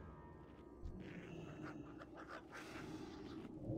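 Game fighting effects clink and crackle in short bursts.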